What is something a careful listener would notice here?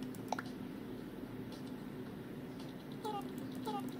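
A button clicks on a handheld game controller.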